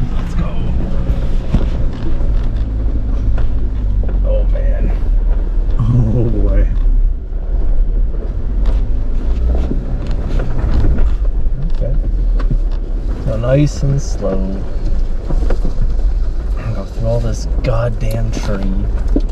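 Tyres crunch over loose rocks and gravel.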